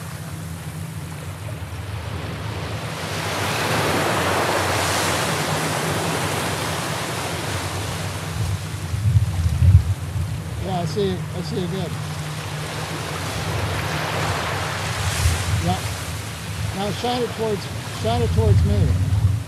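Ocean waves wash onto a beach in a steady rush.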